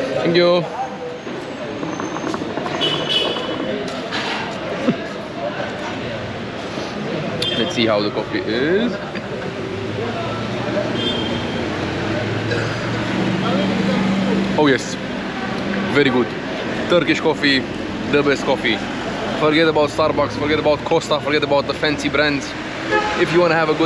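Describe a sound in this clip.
People chatter in the background outdoors.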